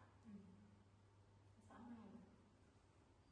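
A woman murmurs softly close by.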